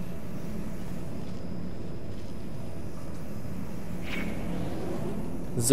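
A laser hums with a steady low electric buzz.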